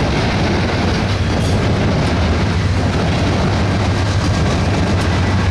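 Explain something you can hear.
A diesel locomotive engine roars as it passes close by.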